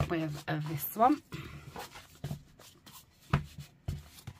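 Stiff paper rustles as a booklet is handled.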